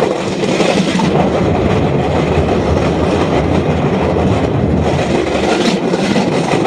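Wheels rumble more deeply over a metal bridge.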